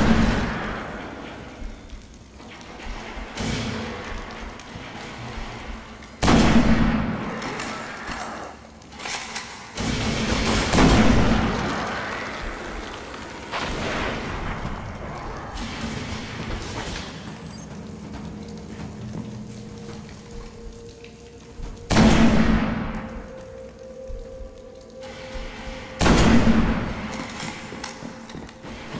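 A heavy rifle fires loud booming shots that echo and slowly fade.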